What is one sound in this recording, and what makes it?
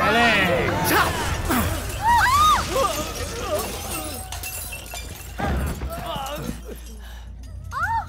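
A crowd shouts and screams in a commotion.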